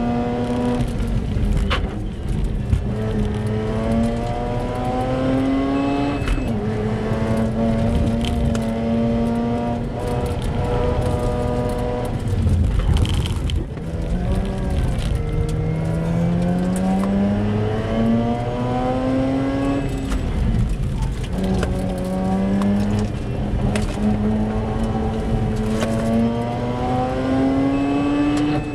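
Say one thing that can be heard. A car engine roars loudly, revving up and down through the gears.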